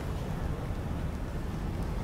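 A hovering aircraft hums with a low, steady drone.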